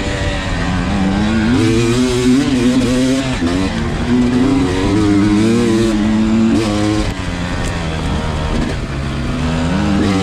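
A second dirt bike engine buzzes a little way ahead.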